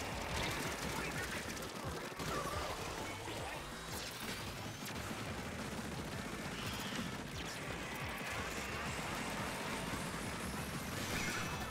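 Wet, splashy shots burst again and again in a video game.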